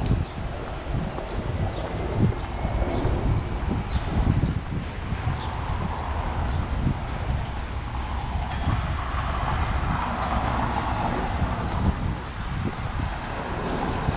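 Wind rumbles outdoors.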